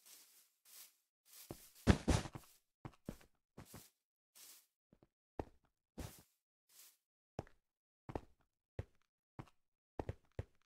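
Footsteps tap on stone in a quick, uneven rhythm.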